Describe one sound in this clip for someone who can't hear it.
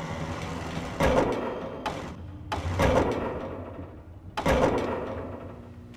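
Heavy logs thud down loudly.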